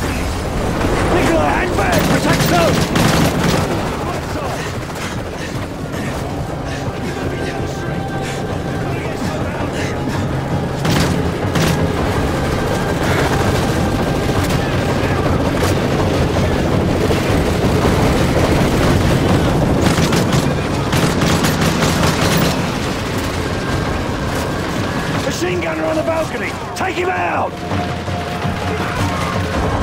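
Rapid gunfire cracks and rattles close by.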